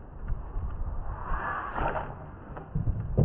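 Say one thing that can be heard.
A fishing rod swishes through the air as it is cast.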